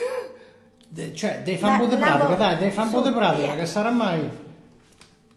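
An accordion plays a lively tune.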